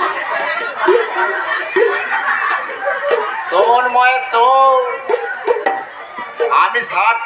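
An elderly man speaks dramatically through a loudspeaker in an echoing open space.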